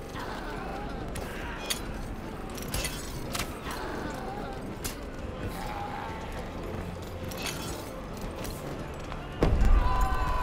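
Swords and spears clash and clang in a battle.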